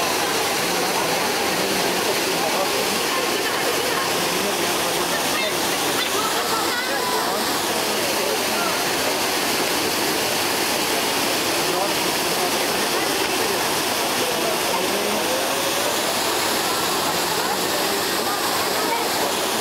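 Water splashes and rushes steadily from a fountain.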